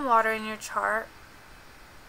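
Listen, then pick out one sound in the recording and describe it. A young woman speaks calmly into a nearby microphone.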